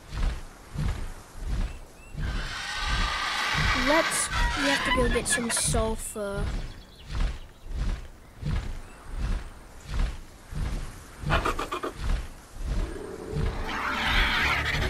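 Large wings beat in a steady, regular rhythm of low thumps.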